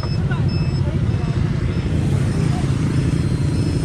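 Motorcycles ride past on the road.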